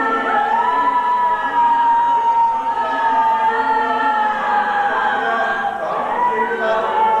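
A middle-aged man sings a slow chant with long held notes into a microphone.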